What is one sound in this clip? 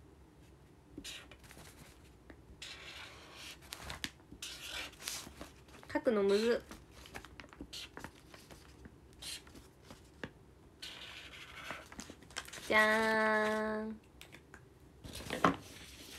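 A young woman speaks softly and intermittently, close to the microphone.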